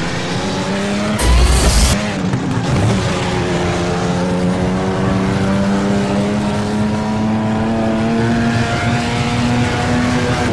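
A car engine roars steadily and climbs in pitch as the car speeds up.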